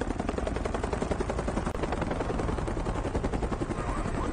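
A helicopter's rotor blades chop loudly overhead.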